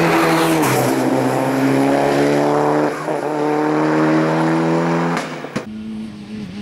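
A rally car engine roars loudly and shifts gears as it accelerates away.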